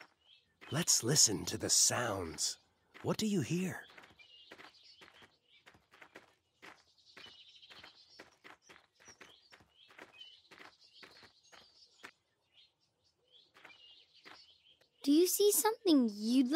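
A young boy speaks with animation.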